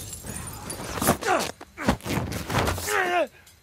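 Hands slap onto a metal pipe with a dull clang.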